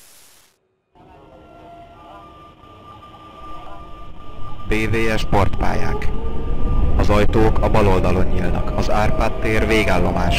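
A train starts moving and rumbles as it speeds up.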